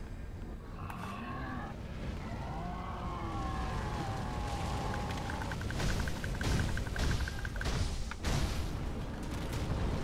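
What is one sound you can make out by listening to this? A huge beast lets out deep, growling roars.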